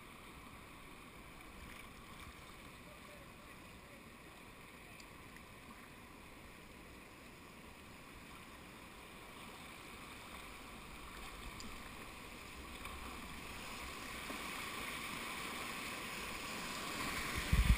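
River rapids rush and roar, growing louder toward the end.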